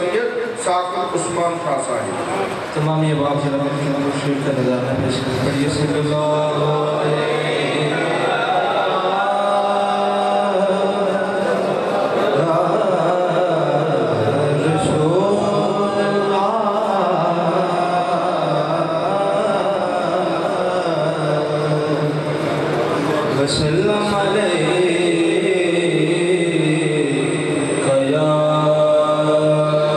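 A young man chants melodically into a microphone, heard through a loudspeaker in an echoing room.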